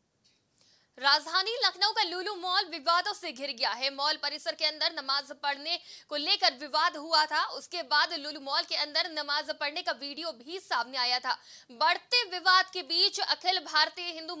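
A young woman reads out news clearly through a microphone.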